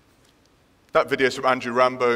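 A man speaks calmly into a microphone, his voice carrying through a hall.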